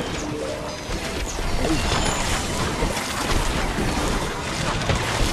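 Game sound effects of zaps, pops and blasts clatter rapidly without pause.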